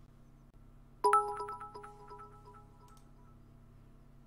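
A bright chime rings out with quick ringing notes and fades away.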